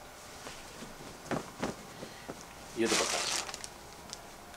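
Cloth rustles and swishes as it is unfolded.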